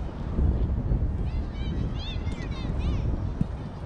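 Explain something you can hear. A football is kicked hard on grass.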